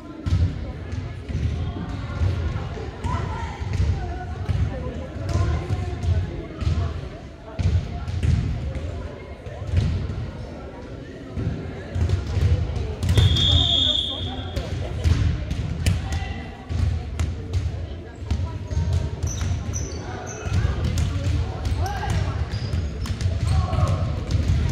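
Women and girls chatter nearby in a large echoing gym.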